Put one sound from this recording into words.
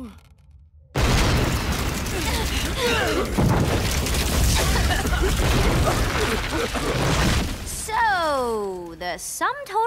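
A loud explosion booms and rumbles on.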